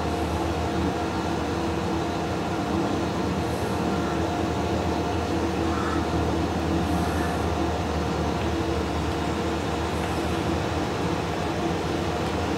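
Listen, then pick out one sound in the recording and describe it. A tractor engine drones steadily while pulling a seed drill.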